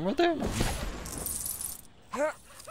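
Small coins scatter and jingle in a bright clatter.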